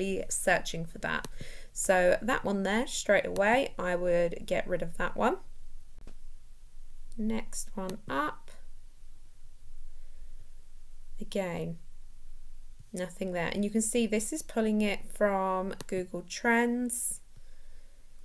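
A young woman talks calmly and close into a microphone.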